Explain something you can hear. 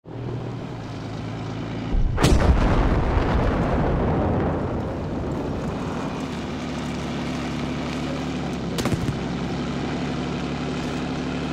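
A tank engine rumbles steadily.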